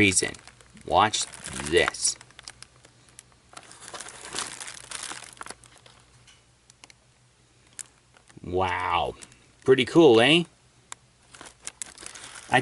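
Plastic packaging crinkles and clicks under a pressing finger.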